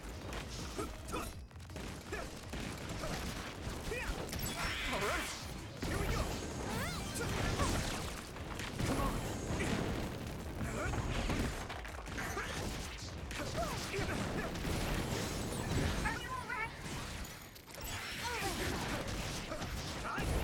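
Blades swish and clash in a fast fight.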